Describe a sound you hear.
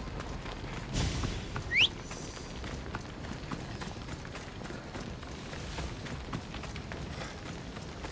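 Footsteps run over a dirt path.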